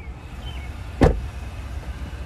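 A car door slams shut with a heavy thud.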